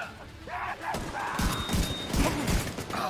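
Gunshots thud in quick bursts.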